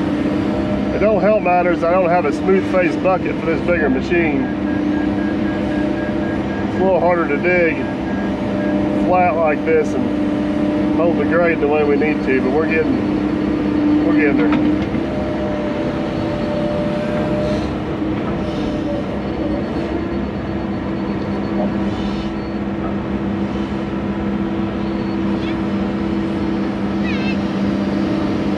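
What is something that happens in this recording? An excavator bucket scrapes and digs into soil.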